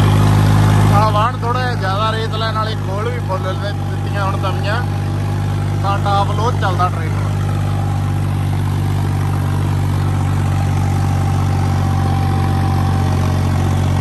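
A tractor engine drones steadily close by.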